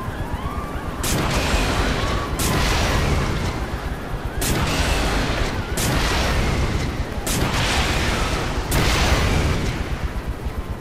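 Explosions boom in loud bursts.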